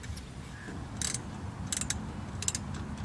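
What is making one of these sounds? Metal parts clink and tap as a man works on them.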